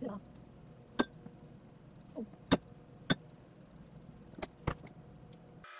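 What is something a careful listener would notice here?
A spoon clinks against a glass cup.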